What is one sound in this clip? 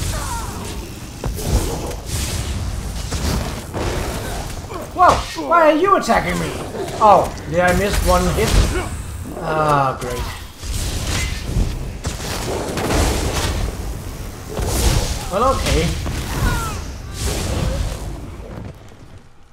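Magic lightning crackles and zaps in bursts.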